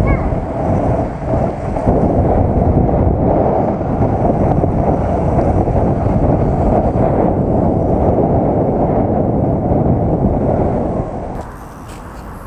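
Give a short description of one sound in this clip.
Wind roars loudly past a fast-moving rider.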